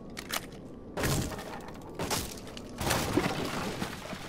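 Heavy blows smash through a wooden barricade.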